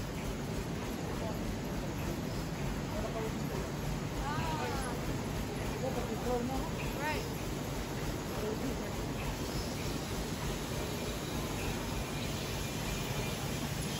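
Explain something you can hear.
A bottling machine whirs and clatters steadily.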